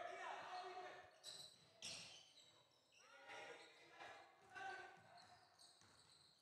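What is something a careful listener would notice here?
Young women players call out loudly to each other.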